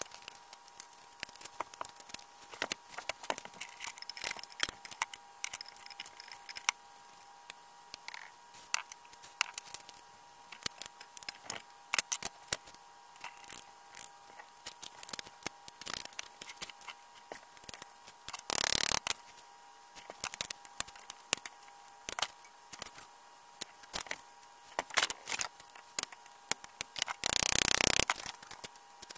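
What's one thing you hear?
Metal parts clink and clatter.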